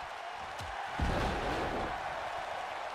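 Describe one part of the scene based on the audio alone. A heavy body slams onto a ring mat with a loud thud.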